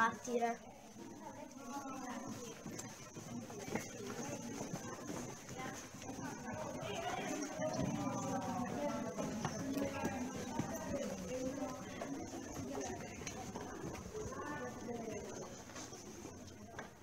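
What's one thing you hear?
Children chatter as they walk along.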